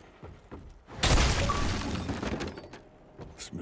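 A wooden door splinters and crashes open.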